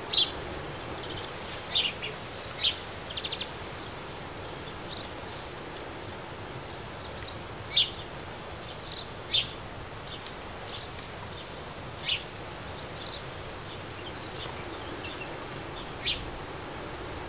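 Small birds chirp in short, sharp calls nearby.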